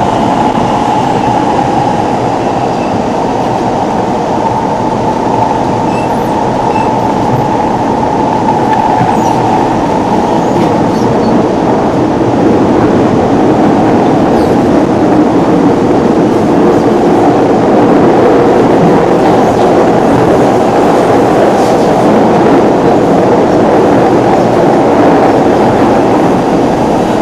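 A subway train rumbles and roars steadily along the tracks.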